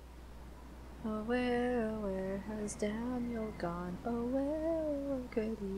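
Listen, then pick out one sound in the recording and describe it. A young woman speaks with animation close to a headset microphone.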